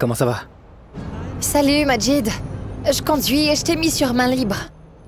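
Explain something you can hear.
A woman sings with a melodic, sustained voice.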